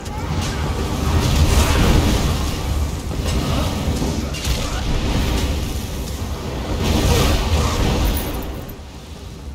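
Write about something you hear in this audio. Magic blasts crackle and boom in a fierce fight.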